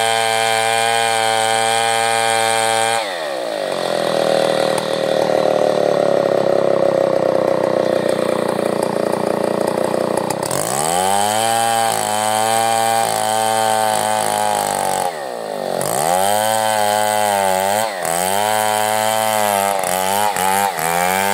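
A chainsaw engine roars close by, its pitch dropping and rising again and again.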